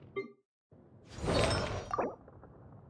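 A sparkling whoosh rises and fades.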